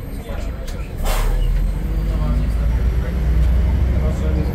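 A bus engine grows louder as the bus pulls away.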